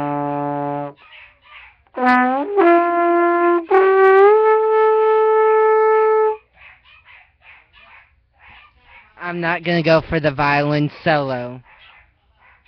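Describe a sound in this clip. A trombone plays loud, sustained notes close by.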